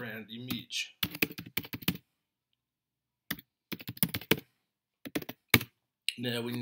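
Computer keys click as someone types quickly.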